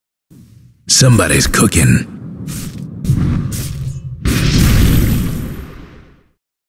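Spell effects crackle and clash in a video game battle.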